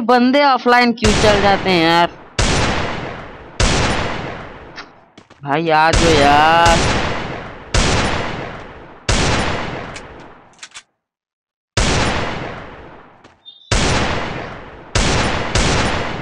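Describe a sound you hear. Gunshots fire one after another, each ringing out and slowly fading.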